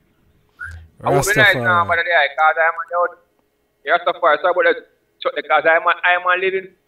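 A man speaks close to a phone microphone, with animation.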